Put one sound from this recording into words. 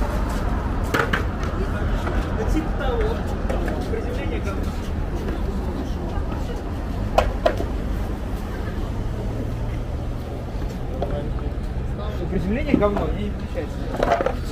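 Skateboard wheels roll and rumble on pavement.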